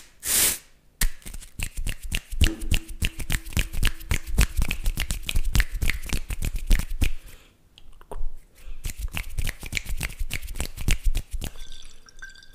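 A man makes quick, wet clicking sounds with his mouth, very close to a microphone.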